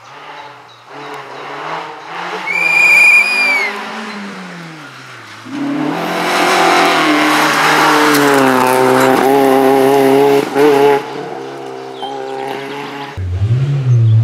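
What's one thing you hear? A rally car engine revs hard and roars past.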